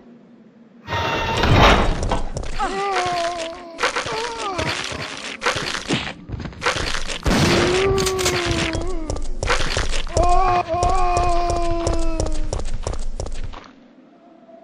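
Gunshots bang repeatedly at close range.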